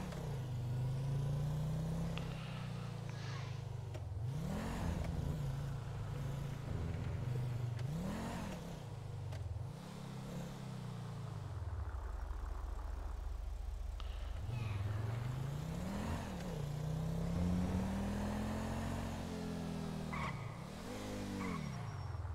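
A car engine revs hard and shifts through gears, rising and falling in pitch.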